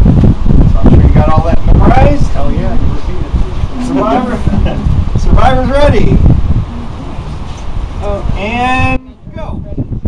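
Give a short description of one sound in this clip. A man speaks to a group outdoors.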